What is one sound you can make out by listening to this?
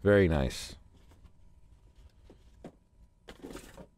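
A small device is lifted out of a foam tray.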